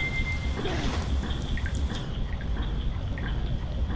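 A game character splashes through water.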